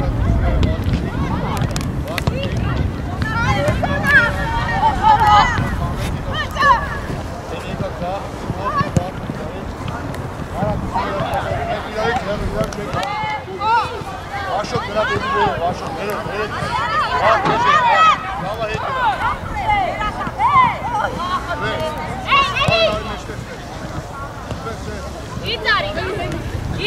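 Young women shout and call to each other across an open outdoor field.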